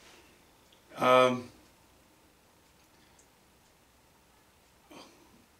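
An older man speaks briefly and calmly, close by.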